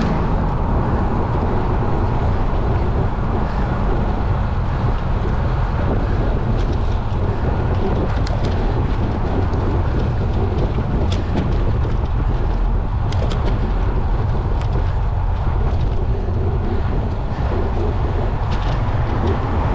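Wind rumbles loudly against the microphone.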